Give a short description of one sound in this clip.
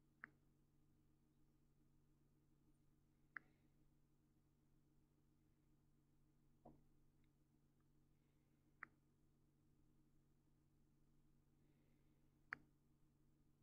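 A glass flask clinks sharply now and then.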